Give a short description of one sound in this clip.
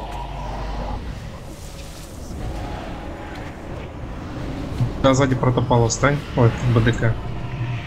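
Magic spells crackle and whoosh in a battle.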